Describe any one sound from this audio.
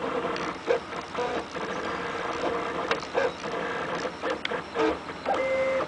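A 3D printer's frame rattles and clicks as the head changes direction.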